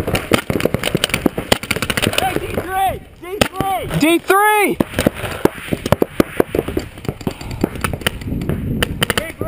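Paintball guns pop in rapid bursts nearby, outdoors.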